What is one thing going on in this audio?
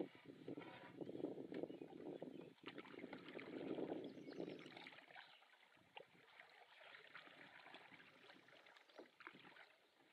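A paddle splashes and swishes through water close by.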